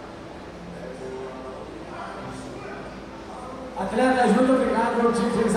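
A man announces over a loudspeaker in a large echoing hall.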